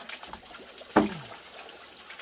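A plastic bucket thumps down onto a wooden floor.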